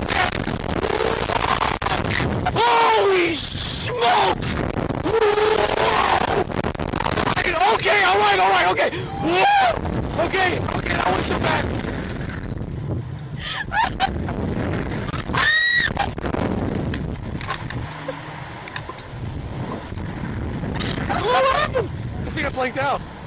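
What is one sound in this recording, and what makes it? A young man shouts and laughs close by.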